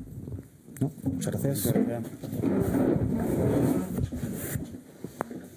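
A chair scrapes and knocks as a man stands up from a table.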